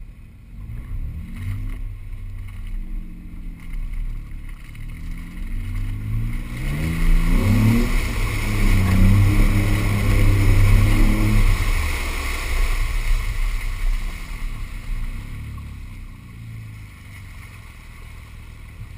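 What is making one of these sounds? Tyres roll and crunch over rough dirt.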